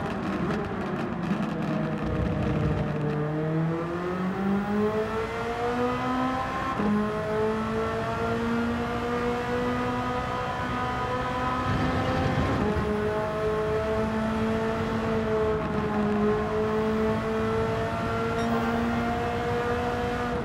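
A racing car engine revs high, rising in pitch as it speeds up and dropping at each gear change.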